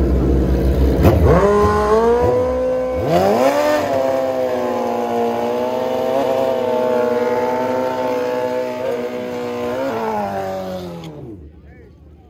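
A motorcycle engine revs up and down sharply, then cuts off.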